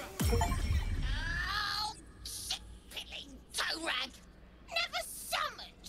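A gruff, raspy creature voice snarls and shouts angrily, close by.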